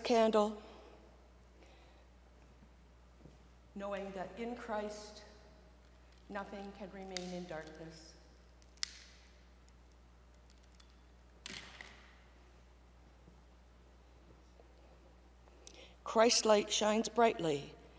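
An older woman speaks calmly into a microphone in an echoing hall.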